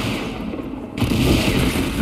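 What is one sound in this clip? An energy blast crackles and whooshes.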